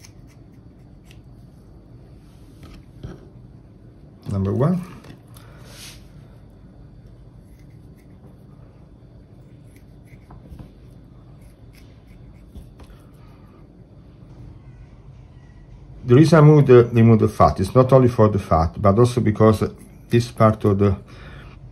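A knife slices through raw meat on a wooden board.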